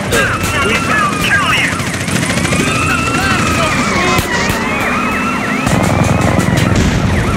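A car engine roars as a vehicle speeds along.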